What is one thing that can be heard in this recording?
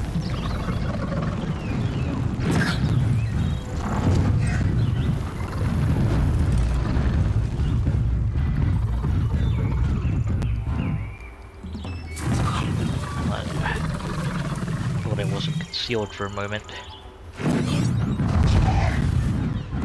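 Metal creatures clash with heavy thuds and bursts.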